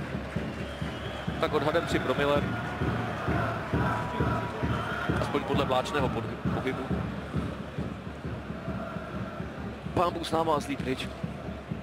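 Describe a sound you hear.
A large stadium crowd roars and chants steadily outdoors.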